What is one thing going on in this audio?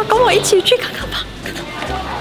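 A young woman speaks cheerfully and close up.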